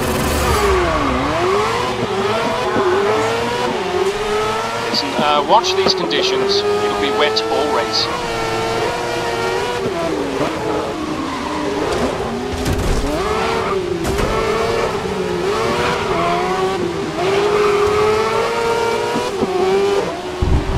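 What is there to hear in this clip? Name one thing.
A racing car engine roars and whines up and down through gear changes.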